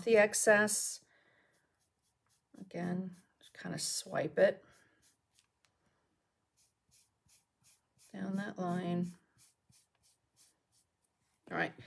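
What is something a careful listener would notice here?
A brush dabs softly on paper.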